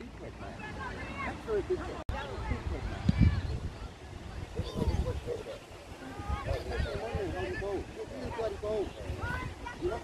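Children shout to one another across an open field.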